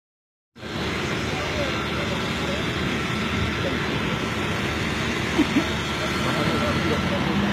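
A crowd of men and women talks and murmurs nearby, outdoors.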